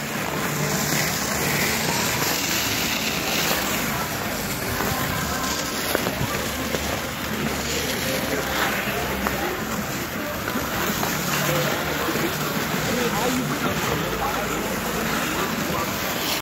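Ice skates scrape and glide on ice.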